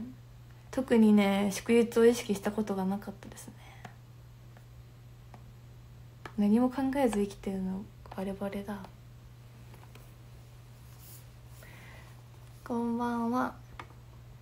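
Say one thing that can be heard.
A young woman talks animatedly and close up into a microphone, with pauses.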